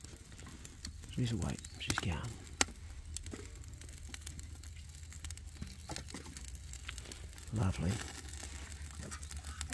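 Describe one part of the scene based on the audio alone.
A small fire crackles faintly.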